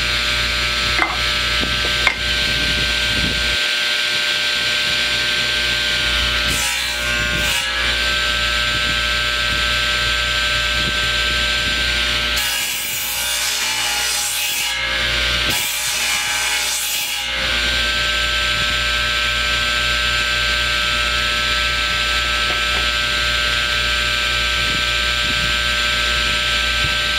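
A power saw hums steadily.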